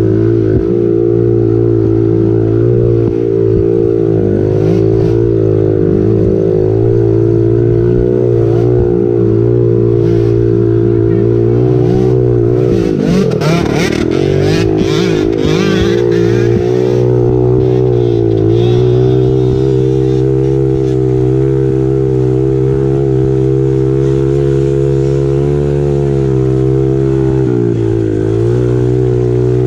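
A dirt bike engine drones loudly and steadily close by.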